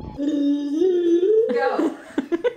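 A young woman sings a long wavering note nearby.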